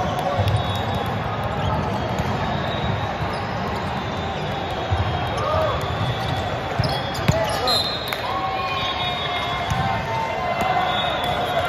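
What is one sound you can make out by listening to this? Hands strike a volleyball with sharp slaps in a large echoing hall.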